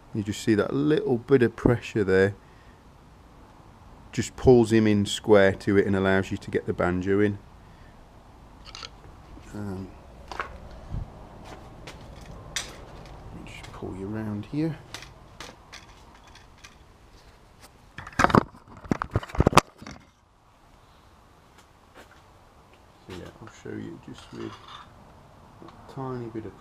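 A screwdriver scrapes and clicks against a metal bolt.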